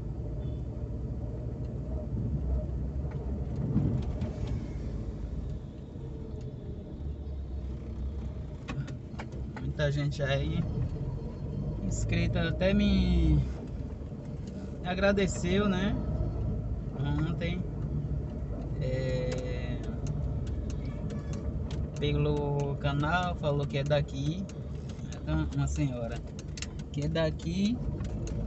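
A car engine hums steadily at low speed from inside the car.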